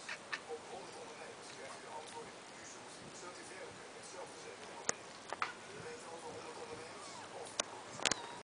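Newborn kittens squeak faintly close by.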